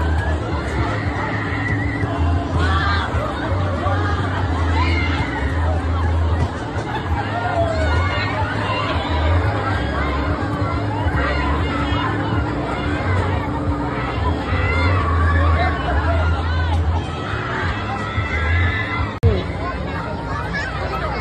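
A crowd of young riders screams and shrieks on a spinning fairground ride.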